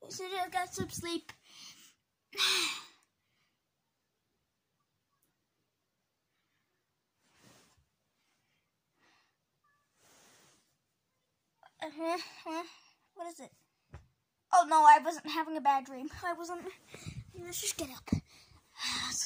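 A boy talks with animation, close up.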